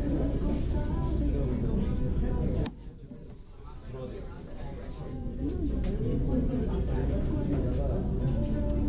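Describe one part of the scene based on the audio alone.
A young woman talks casually close by.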